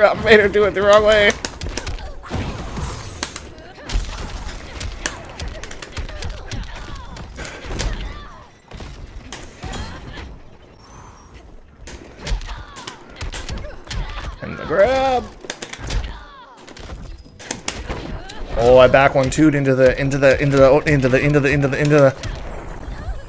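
Punches, kicks and energy blasts thud and crack rapidly in a fighting game.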